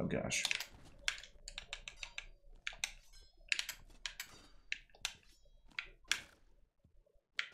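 Short, sharp video game hit and swipe sounds come in quick succession.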